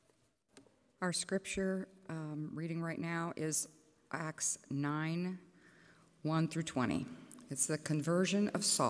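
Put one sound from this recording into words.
An elderly woman reads aloud calmly through a microphone.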